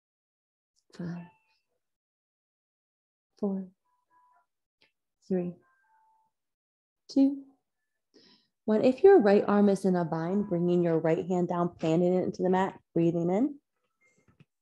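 A woman speaks calmly and softly, nearby.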